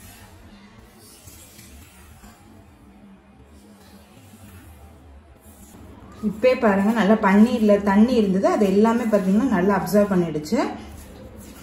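A spatula stirs and scrapes butter and flour in a glass bowl.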